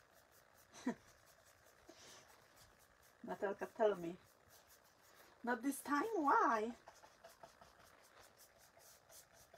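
A sponge dabs lightly on paper.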